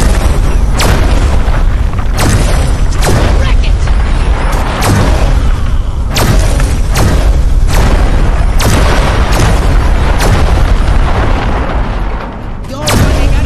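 A low rumbling hum drones steadily.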